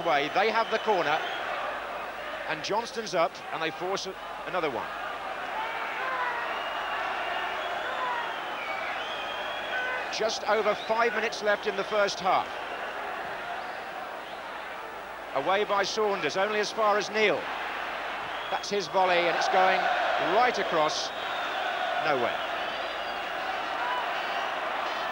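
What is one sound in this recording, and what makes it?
A large crowd roars and chants in a stadium.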